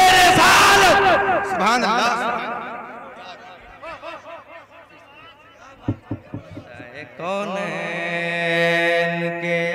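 A man chants loudly through a microphone and echoing loudspeakers, his voice wavering and stretching out long notes.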